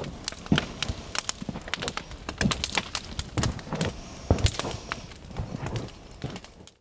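A bonfire crackles and pops loudly outdoors.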